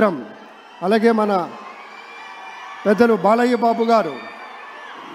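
A large crowd cheers and chants loudly in bursts.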